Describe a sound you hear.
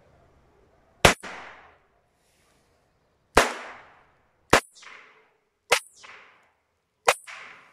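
A revolver fires loud shots outdoors, each followed by a short echo.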